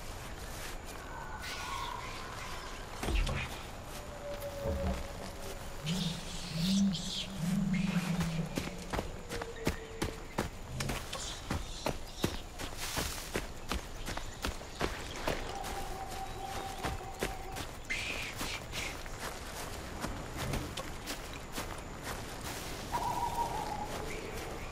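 Footsteps rustle through grass and ferns.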